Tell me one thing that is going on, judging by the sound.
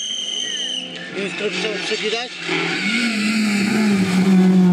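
A rally car engine revs hard as the car approaches and passes close by.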